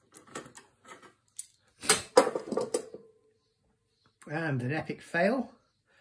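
A metal clamp clicks against wood as it is set in place.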